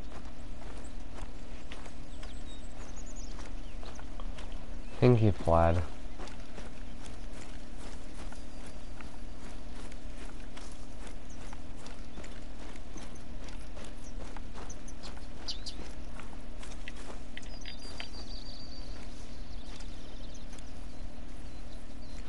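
Footsteps swish through dry grass.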